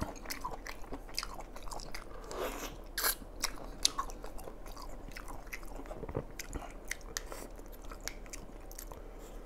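A man chews and slurps seafood loudly and close to the microphone.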